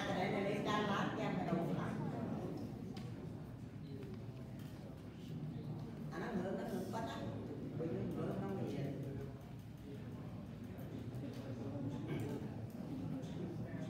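A young man speaks calmly, lecturing in a room with some echo.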